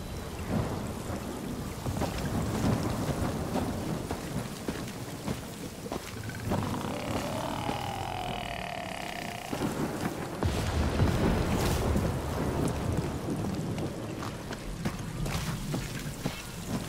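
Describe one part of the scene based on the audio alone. Footsteps rustle through leafy plants.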